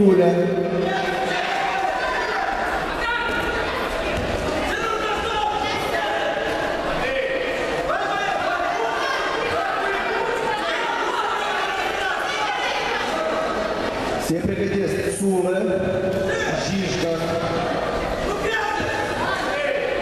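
A large crowd of spectators chatters and calls out in a big echoing hall.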